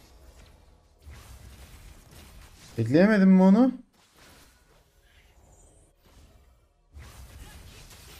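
Game spells whoosh and crackle during a fight.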